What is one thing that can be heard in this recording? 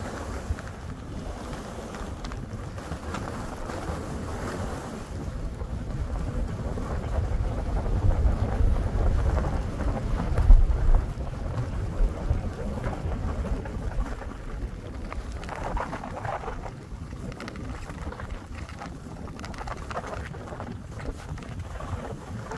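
Wind rumbles over the microphone outdoors.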